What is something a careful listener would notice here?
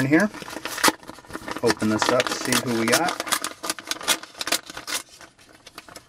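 Paper rustles and tears as an envelope is ripped open.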